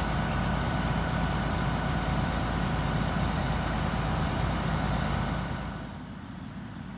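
A fire engine's motor idles with a steady low hum.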